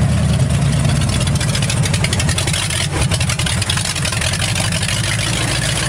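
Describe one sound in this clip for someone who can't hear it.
Loose metal parts rattle and clatter as a vehicle drives over a bumpy road.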